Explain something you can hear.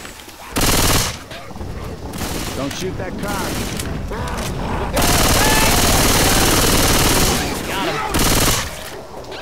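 Zombies snarl and growl close by.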